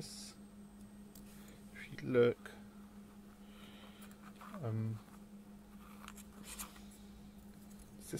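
A small circuit board slides and taps softly on a cutting mat.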